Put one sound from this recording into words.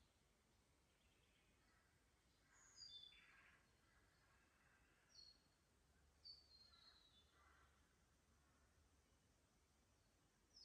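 Water trickles quietly between stones.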